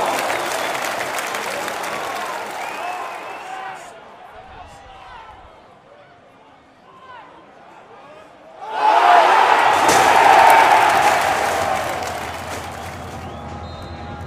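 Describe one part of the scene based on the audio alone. A large stadium crowd cheers and chants.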